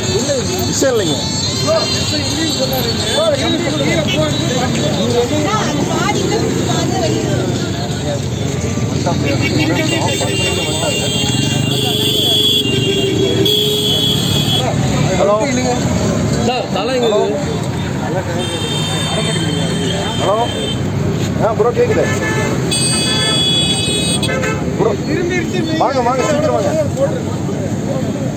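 A crowd of men talk loudly and excitedly close by.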